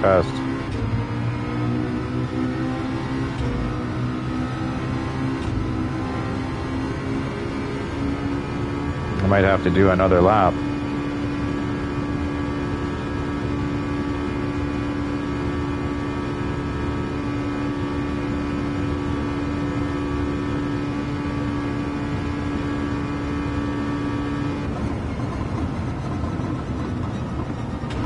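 A racing car engine roars at high revs, shifting up through the gears.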